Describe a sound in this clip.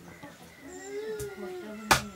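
A knife chops meat on a wooden block with sharp thuds.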